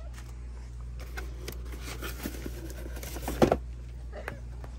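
Plastic and cardboard packaging rustles and crinkles close by.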